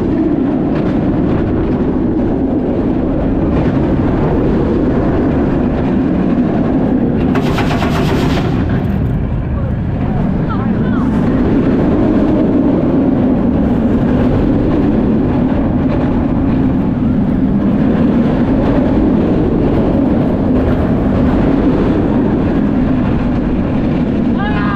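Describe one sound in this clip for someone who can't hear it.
Wind roars past loudly.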